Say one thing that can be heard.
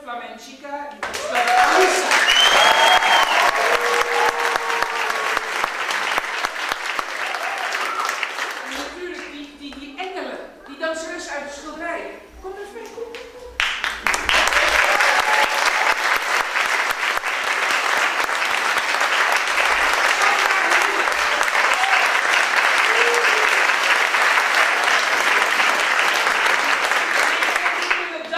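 An audience applauds and cheers loudly.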